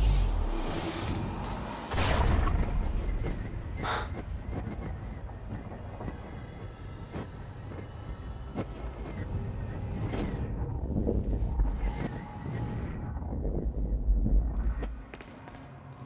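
A low industrial rumble drones loudly and then drops away.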